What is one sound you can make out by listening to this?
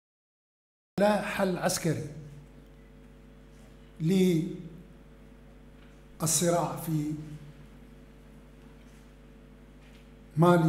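An elderly man speaks slowly and calmly into a microphone, pausing often.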